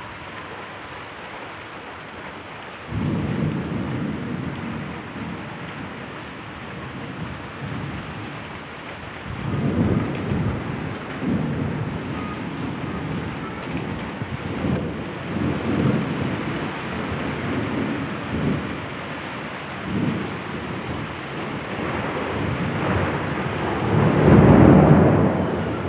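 Rain falls steadily, with low rumbling swells.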